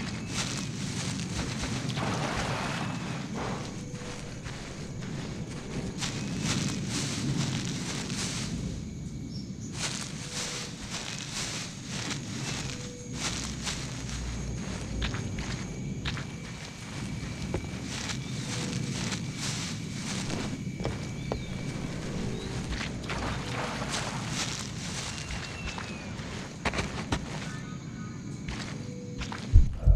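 Footsteps rustle steadily through tall grass and undergrowth.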